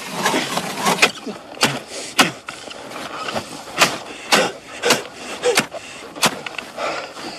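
A metal bar strikes and chips at ice with sharp knocks.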